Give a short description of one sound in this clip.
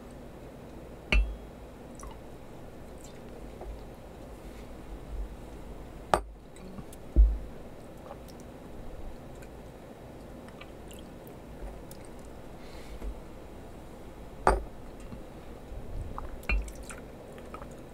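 Liquid trickles from a bottle into a small cup.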